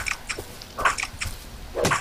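An axe strikes a rock with a sharp knock.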